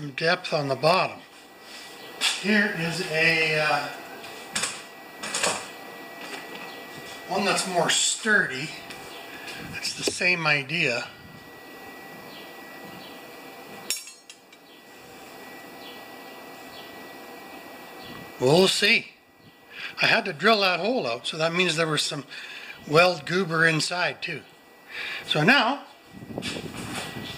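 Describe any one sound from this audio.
An elderly man talks calmly close to the microphone, in short bursts with pauses.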